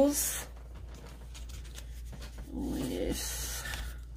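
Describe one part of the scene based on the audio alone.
A sticker peels off a backing sheet with a soft tearing sound.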